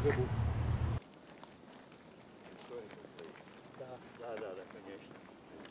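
Footsteps shuffle on a paved path.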